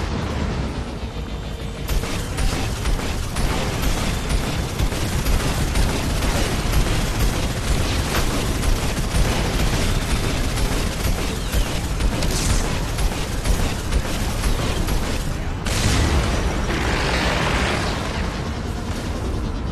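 A hovercraft engine roars steadily.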